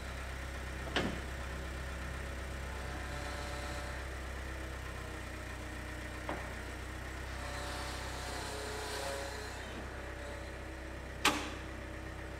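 A loader bucket clanks against the concrete floor.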